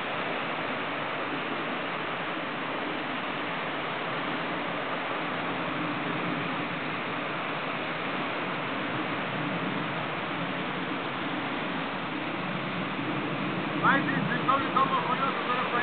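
Wind blows steadily across the microphone outdoors.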